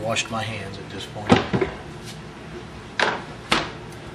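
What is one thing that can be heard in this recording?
A plastic cutting board knocks down on a counter.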